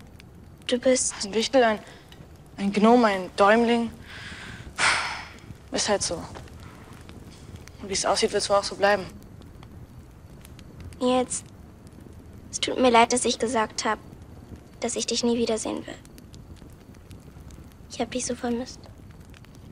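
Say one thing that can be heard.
A teenage girl speaks softly nearby.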